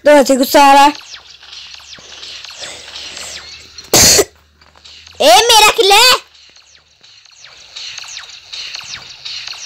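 Plasma guns fire in quick bursts.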